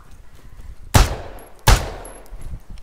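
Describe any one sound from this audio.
A pistol fires two loud shots close by.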